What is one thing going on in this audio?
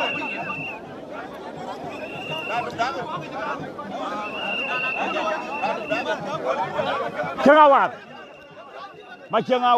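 A crowd chatters and shouts outdoors.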